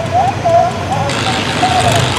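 A tractor engine revs as it pulls away.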